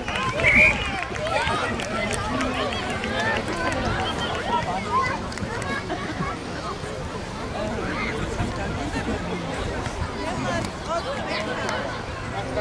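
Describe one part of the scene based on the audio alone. A crowd of spectators cheers and shouts from a distance outdoors.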